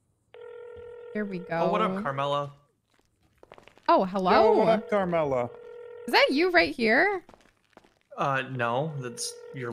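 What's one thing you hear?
A young woman talks on a phone.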